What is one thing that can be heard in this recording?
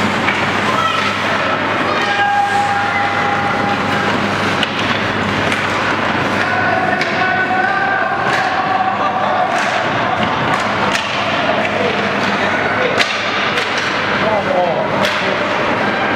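Hockey sticks clack against a puck and each other in an echoing rink.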